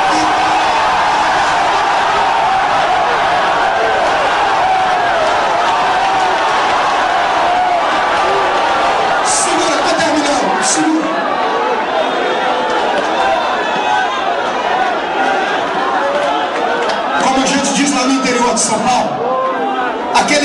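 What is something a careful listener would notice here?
A large crowd chants and shouts loudly in an echoing hall.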